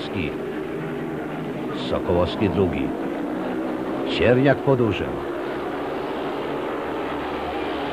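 Speedway motorcycle engines roar and whine around a track.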